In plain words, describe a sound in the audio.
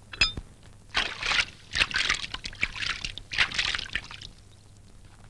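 Water sloshes and splashes in a bucket.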